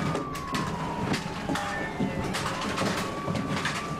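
People walk with hurried footsteps on a hard floor.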